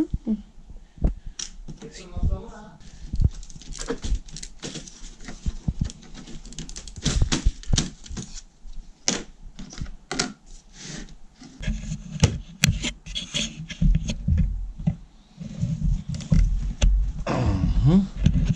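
Plastic model railway track pieces click and clatter as a hand moves them.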